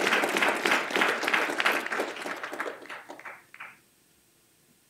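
An audience applauds in a large room, and the clapping fades out.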